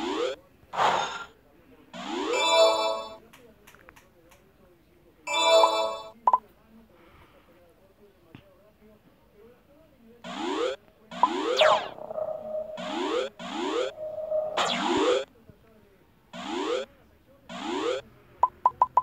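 Short rising electronic blips sound again and again.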